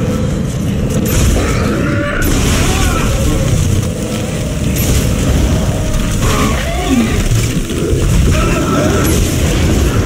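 A cutting tool fires in sharp bursts.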